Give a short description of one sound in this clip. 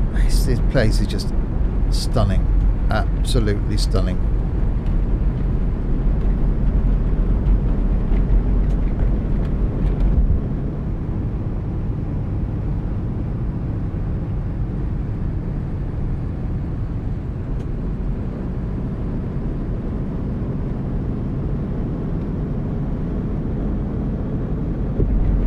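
A bus engine drones steadily with a low hum.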